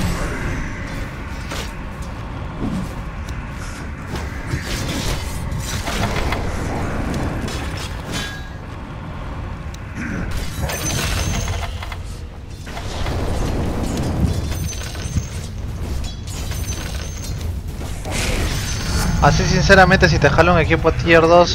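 Game combat effects clash and crackle throughout.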